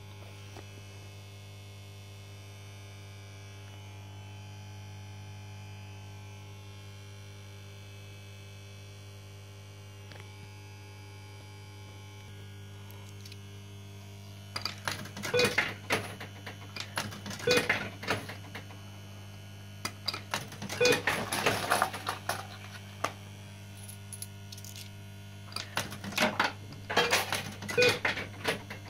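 A fruit machine hums steadily.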